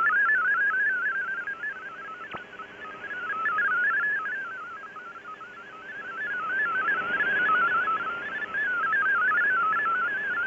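Static hisses steadily from a shortwave radio.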